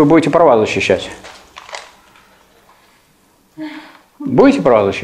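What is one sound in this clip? An elderly man speaks calmly and clearly.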